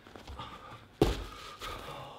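Bare feet land with a heavy thud.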